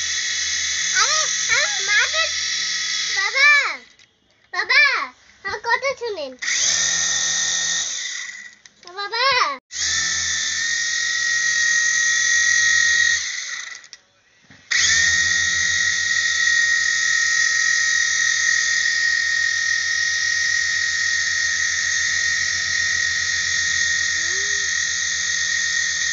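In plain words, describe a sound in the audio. A toy helicopter's rotor whirs with a steady high hum, stopping and starting again.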